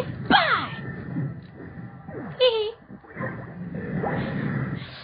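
Video game attack effects whoosh and zap in quick bursts.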